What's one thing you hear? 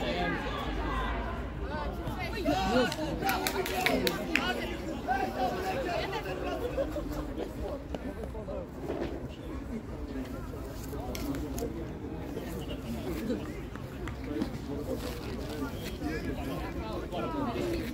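Young men shout to each other from a distance across an open outdoor field.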